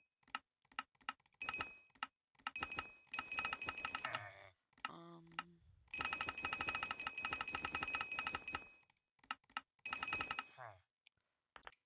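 Short electronic clicks and chimes sound in quick bursts.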